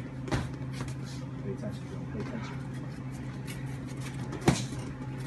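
Shoes scuff and squeak on a padded floor.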